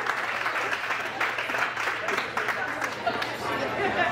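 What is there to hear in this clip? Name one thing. A young woman speaks through a microphone to a crowd.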